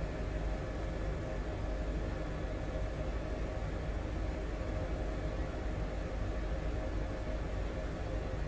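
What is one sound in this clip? A helicopter engine and rotor drone steadily with a low rumble.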